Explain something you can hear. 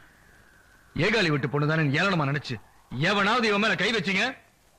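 A man speaks loudly and angrily nearby.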